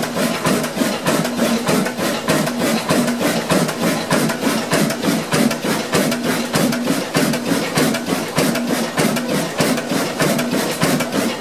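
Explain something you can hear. An old stationary diesel engine runs with a fast rhythmic knock.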